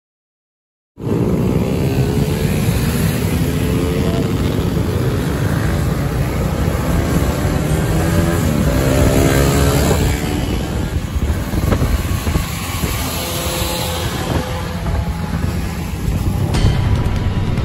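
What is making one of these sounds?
Many motorcycle engines rumble and rev close by.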